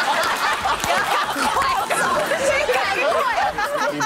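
A woman laughs loudly.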